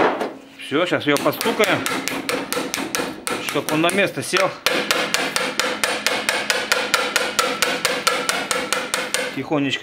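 A ratchet wrench clicks rapidly and steadily on metal.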